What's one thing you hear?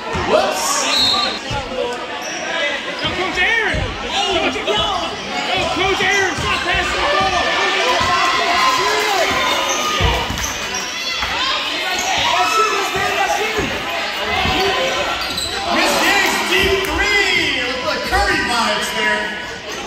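A crowd talks and cheers loudly in a large echoing gym.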